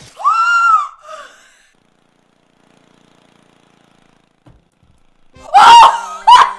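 A young woman shrieks and exclaims loudly and close to a microphone.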